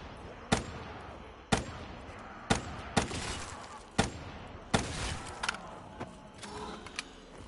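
A gun fires single loud shots, one about every second.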